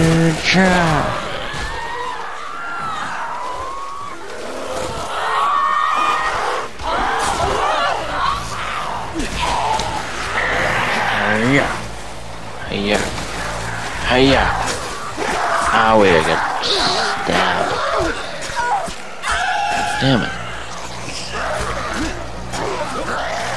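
Heavy blows thud and squelch.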